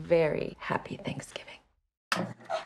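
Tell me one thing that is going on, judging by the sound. A woman speaks warmly and close by.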